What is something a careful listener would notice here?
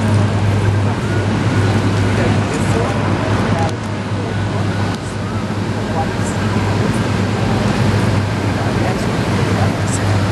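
Cars drive past one after another.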